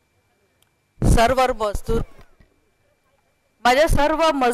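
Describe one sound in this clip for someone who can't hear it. A woman speaks loudly into a microphone over a loudspeaker, with animation.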